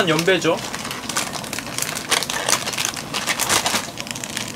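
A plastic wrapper crinkles and rustles in hands.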